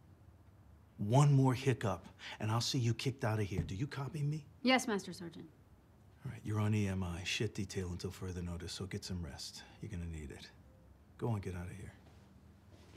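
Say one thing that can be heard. A man speaks calmly and firmly, close by.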